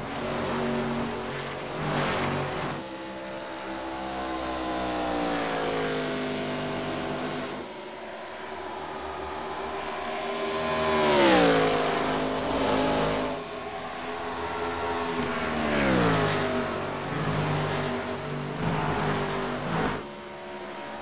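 Race car engines roar steadily, rising and falling in pitch.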